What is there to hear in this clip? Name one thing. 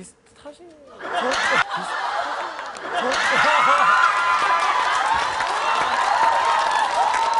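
A crowd of women laughs loudly and shrieks.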